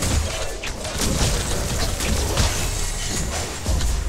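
Magic blasts burst and hit during a fight.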